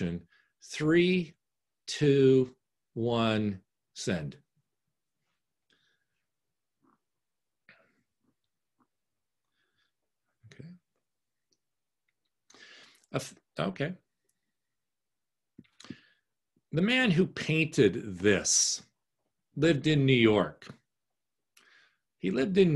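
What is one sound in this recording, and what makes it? A middle-aged man talks calmly through an online call, pausing between phrases.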